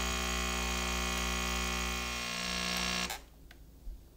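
A coffee machine hums loudly and steadily, then cuts off abruptly.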